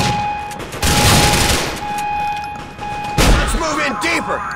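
A gun fires a rapid burst of loud shots.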